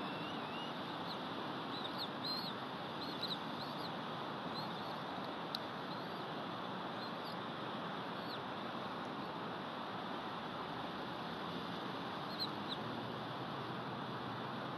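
Wind rushes steadily through pine branches outdoors.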